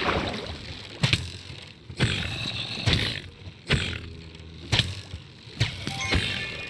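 Sharp sword hits strike a creature again and again.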